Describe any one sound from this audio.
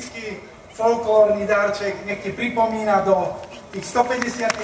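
A man speaks into a microphone, heard through loudspeakers.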